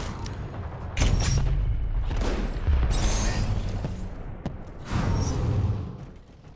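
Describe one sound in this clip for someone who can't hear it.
Gunshots and blasts boom in loud bursts.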